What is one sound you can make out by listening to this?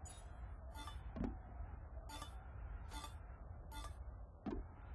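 Short electronic chimes ring out one after another as points are tallied.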